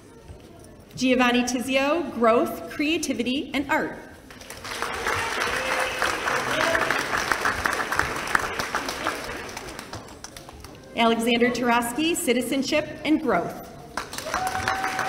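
A woman announces over a loudspeaker in a large hall.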